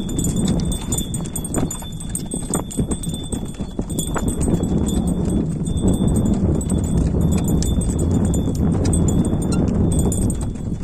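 Hooves thud on soft dirt as a pair of oxen trot.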